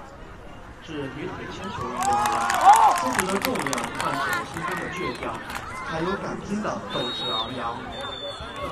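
A crowd of young people cheers and shouts loudly.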